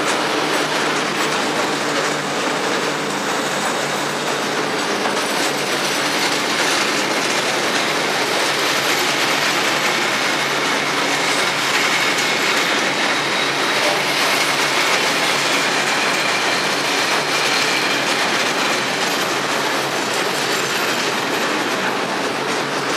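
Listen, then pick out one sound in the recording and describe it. A freight train rumbles and clatters past at speed, close by.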